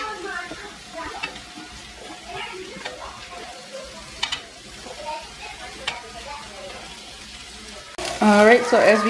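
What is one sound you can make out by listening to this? Pancake batter sizzles softly on a hot griddle.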